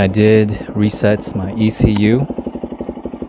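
A small motorcycle engine revs sharply a few times.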